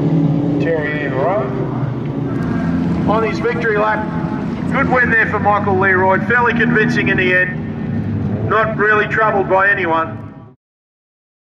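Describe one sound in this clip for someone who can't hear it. A race car engine roars loudly.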